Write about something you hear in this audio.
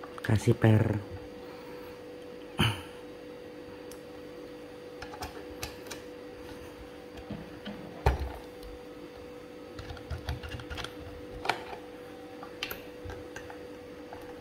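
The metal adjustment ring of a manual coffee grinder clicks as it is turned by hand.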